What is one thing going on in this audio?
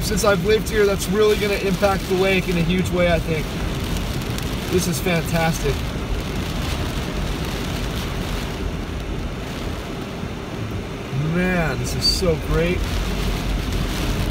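Windshield wipers sweep across the glass.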